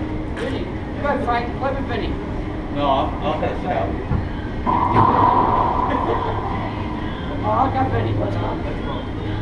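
Men talk and call out to each other, echoing.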